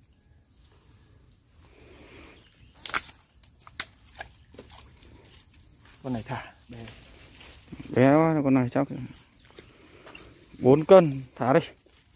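A landing net scrapes and rustles across dry leaves.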